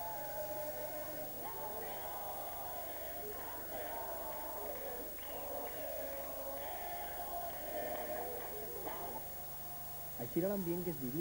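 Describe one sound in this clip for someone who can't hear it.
A crowd of men and women sings loudly together in a large room.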